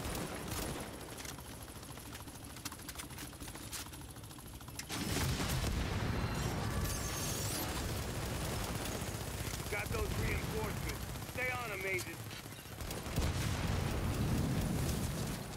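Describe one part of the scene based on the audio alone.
A rifle fires in sharp bursts of shots.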